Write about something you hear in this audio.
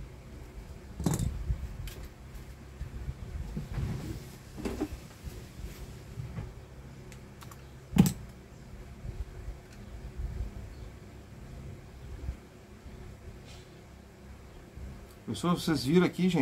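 Small plastic and metal parts click and knock as hands handle them on a table.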